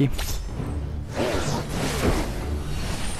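A magic blast crackles and whooshes in a fight between two dragons.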